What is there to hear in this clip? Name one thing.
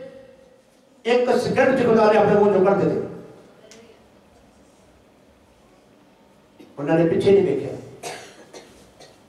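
An elderly man preaches loudly with animation through a microphone.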